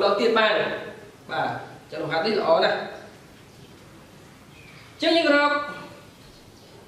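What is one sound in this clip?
A man speaks in short bursts, explaining calmly close by.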